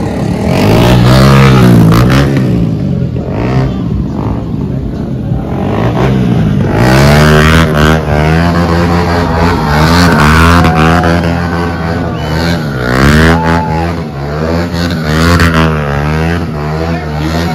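A motorcycle engine revs hard, rising and falling in pitch.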